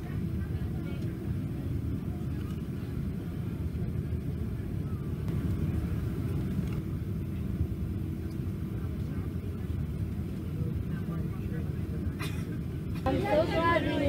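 A jet engine rumbles low and steady.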